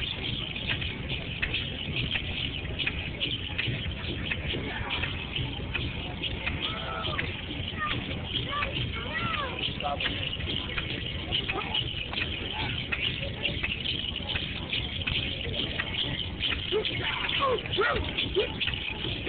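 Ankle bells jingle rapidly as dancers stomp on the ground.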